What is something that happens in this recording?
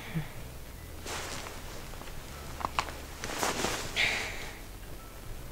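Bedding rustles softly as a person shifts.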